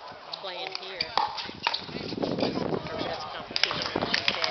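Paddles strike a plastic ball with sharp pops.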